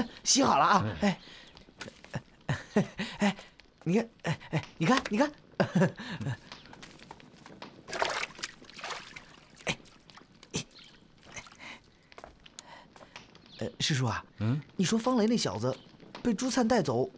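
A young man talks with animation nearby.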